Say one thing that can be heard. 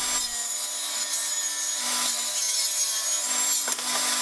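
A wooden board slides across a metal table.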